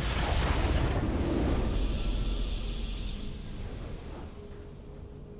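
A bright, triumphant game fanfare swells loudly and then fades away.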